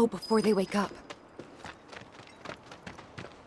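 Footsteps run across gravel.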